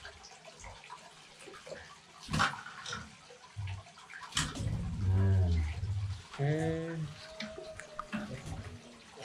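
A metal wire cage rattles and clanks as it is handled.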